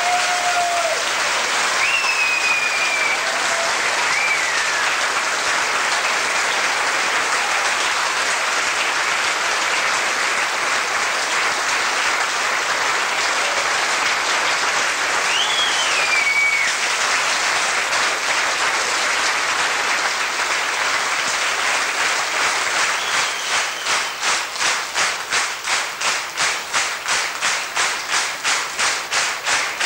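A large band plays loudly in an echoing hall.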